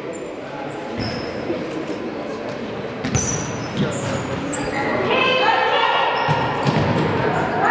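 A ball is kicked with dull thuds in a large echoing hall.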